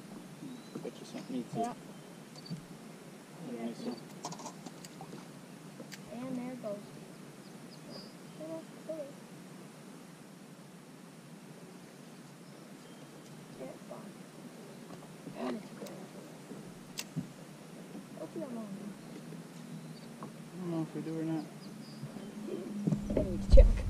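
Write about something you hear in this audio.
Men talk casually nearby outdoors.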